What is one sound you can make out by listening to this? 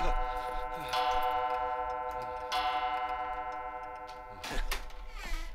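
A clock chimes twice with ringing tones.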